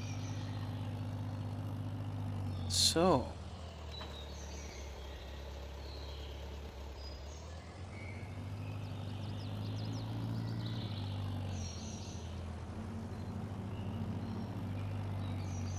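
A tractor engine chugs steadily and revs as the tractor drives off.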